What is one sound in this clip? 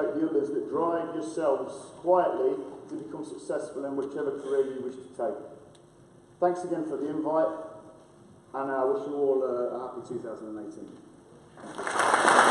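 A man speaks into a microphone, heard in a large echoing hall.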